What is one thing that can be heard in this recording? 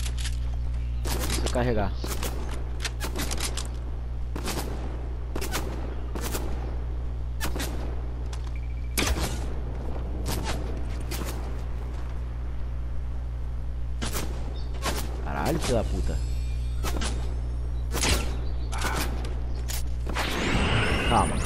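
Footsteps crunch through leaves and brush in a game.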